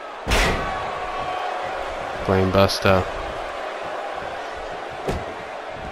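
A body slams onto a mat with a heavy thud.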